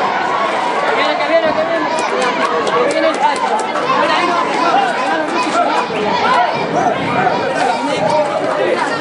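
A crowd of people shouts and chatters loudly outdoors.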